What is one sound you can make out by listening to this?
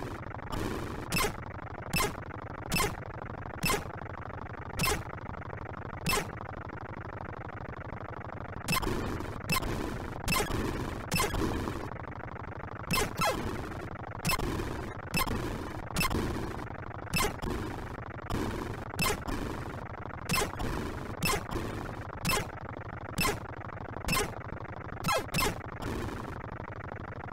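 A retro video game's electronic gunshots crackle in short, sharp bursts.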